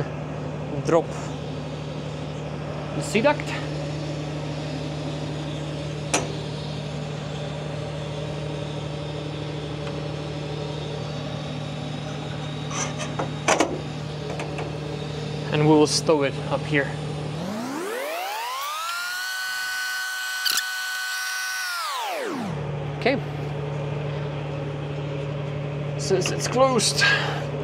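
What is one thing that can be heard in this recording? An electric machine hums steadily nearby.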